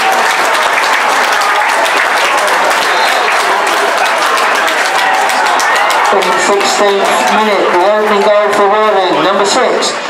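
Footballers shout in celebration.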